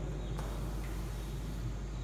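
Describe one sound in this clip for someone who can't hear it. A man wipes a chalkboard with a duster.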